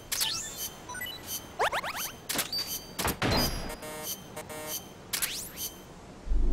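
Electronic menu beeps and chimes sound in quick succession.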